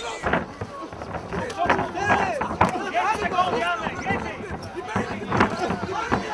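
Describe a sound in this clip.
A crowd shouts and cheers.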